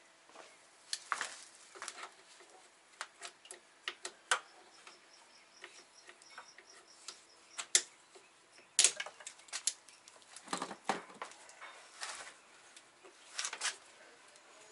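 Metal tools clink and knock against an engine.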